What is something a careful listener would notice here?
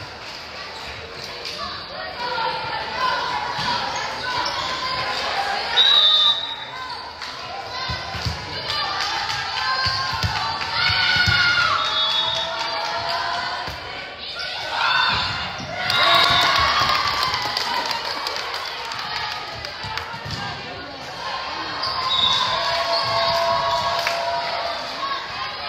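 Young women on a team chatter and call out in a large echoing gym.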